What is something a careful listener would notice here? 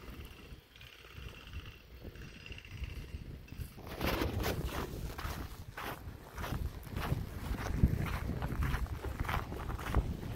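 Wind rumbles across the microphone outdoors.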